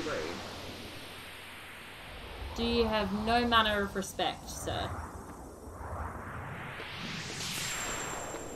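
A magical shimmering whoosh swells and fades.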